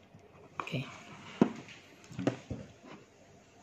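A small plastic connector clicks and taps as it is plugged in.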